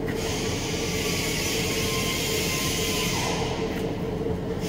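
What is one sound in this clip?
A gas torch hisses briefly.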